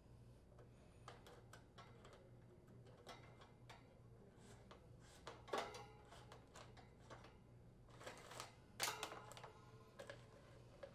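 Metal parts clink and rattle softly as a fan is worked on by hand.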